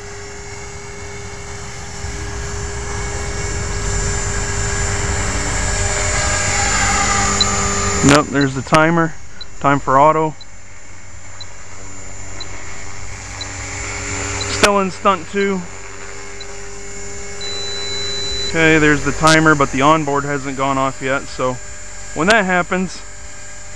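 A model helicopter's engine whines steadily, now far, now close.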